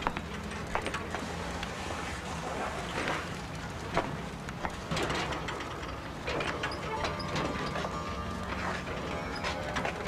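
A cargo tricycle rattles and clatters as it is wheeled over the ground.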